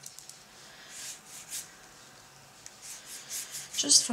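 A paintbrush strokes across watercolor paper.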